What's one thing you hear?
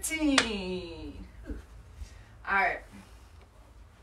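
A young woman speaks loudly and animatedly nearby.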